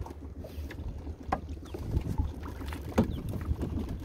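A plastic jug splashes as it is pulled from the water.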